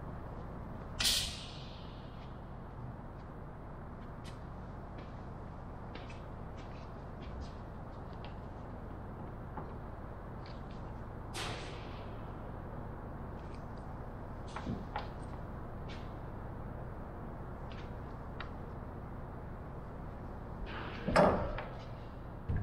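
Light knocks and taps sound on wood close by.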